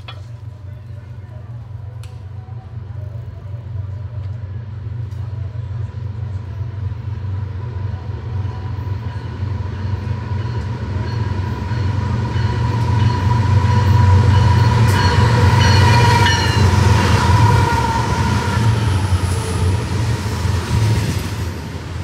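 A freight train's diesel engines rumble as the train approaches and passes close by.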